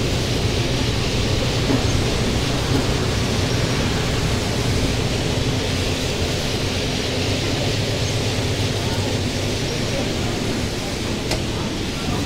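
Tyres roll over the road with a steady rush.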